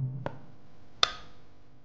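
A glass object clinks against a glass tabletop.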